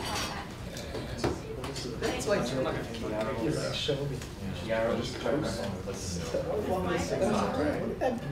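A young man speaks calmly through a microphone in a room with a slight echo.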